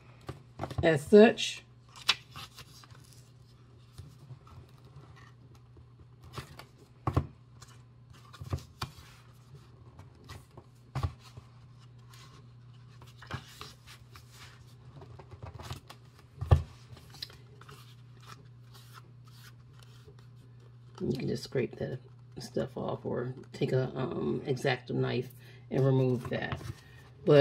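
Paper cards rustle and tap against a hard surface.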